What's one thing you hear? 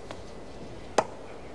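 A tennis racket hits a ball on a serve.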